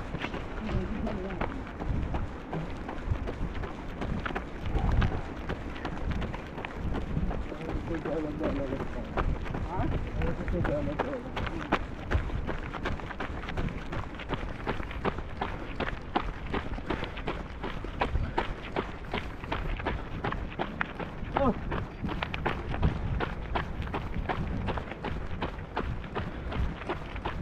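Footsteps crunch quickly on gravel as people run.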